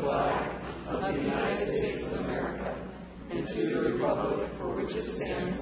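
A group of men recite together in unison in a large room.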